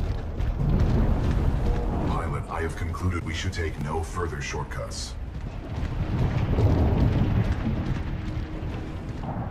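A heavy machine rumbles low and steadily as it moves forward.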